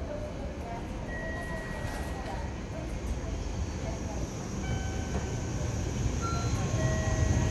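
A high-speed train approaches with a low, growing rumble.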